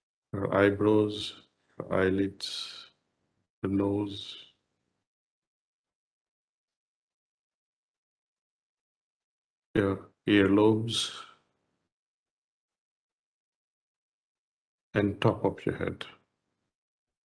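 An elderly man speaks calmly through an online call, in short phrases with pauses.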